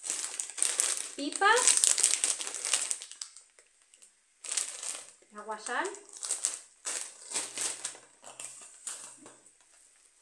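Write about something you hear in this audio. A plastic snack bag crinkles and rustles.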